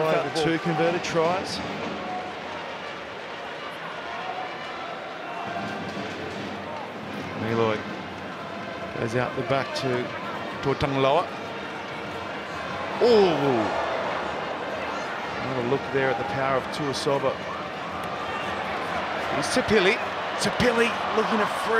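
A large crowd cheers and roars in a big open stadium.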